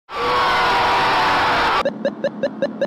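A young man screams loudly.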